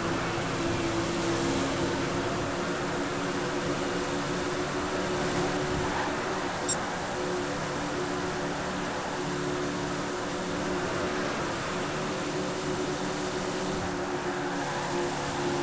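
A stock car engine drones at full throttle in a racing video game.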